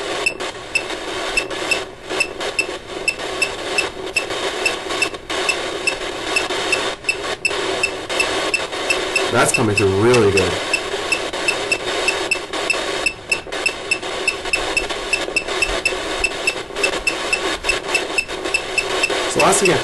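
A phone speaker plays a steady rushing noise.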